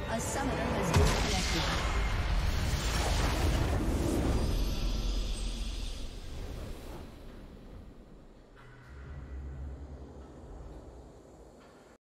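A triumphant victory fanfare swells and then fades.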